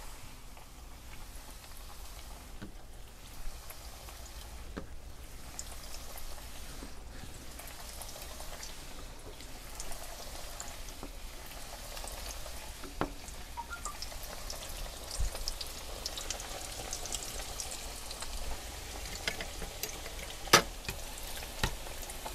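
Oil sizzles and crackles steadily in a pan.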